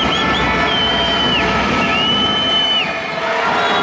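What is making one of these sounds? A referee blows a whistle in long blasts.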